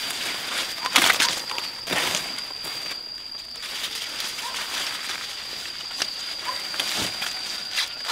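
Ears of corn snap off their stalks with sharp cracks.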